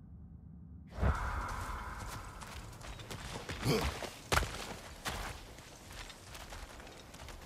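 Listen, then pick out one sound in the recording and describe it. Footsteps crunch over dirt and leaves.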